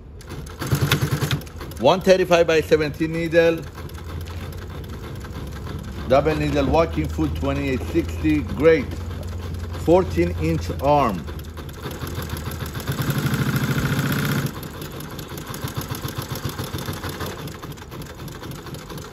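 A sewing machine stitches with a rapid, even clatter.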